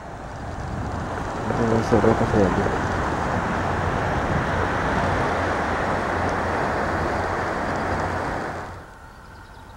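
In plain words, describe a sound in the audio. Wind blows hard outdoors.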